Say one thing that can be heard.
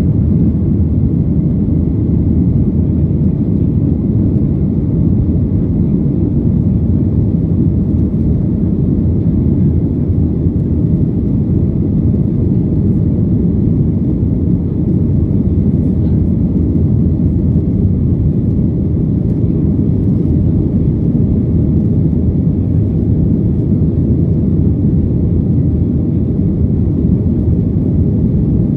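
A jet airliner's engines roar steadily in a deep, constant rumble, heard from inside the cabin.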